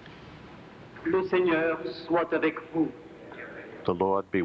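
An elderly man speaks calmly into a microphone, echoing in a large hall.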